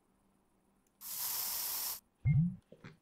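A spray can hisses in a short burst.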